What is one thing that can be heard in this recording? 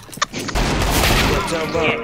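Gunshots ring out in quick bursts.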